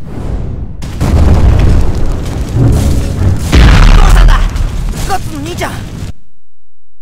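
An explosion booms and roars.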